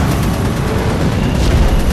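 A spacecraft engine roars with a deep rumble.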